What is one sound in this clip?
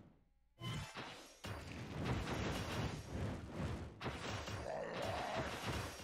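Magic bolts zap in a video game.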